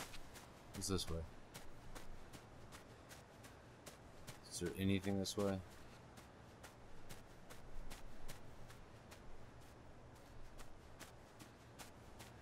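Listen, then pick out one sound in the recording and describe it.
Light footsteps patter steadily on the ground.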